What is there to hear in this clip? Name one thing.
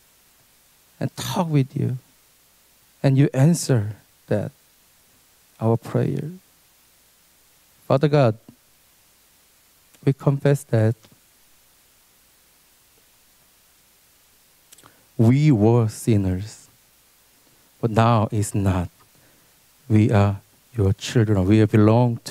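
A young man speaks calmly into a microphone in short phrases with pauses.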